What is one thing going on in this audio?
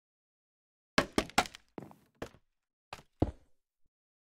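Blocks are placed with short, dull knocks in a game.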